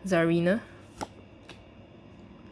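A playing card flicks and slaps softly against another.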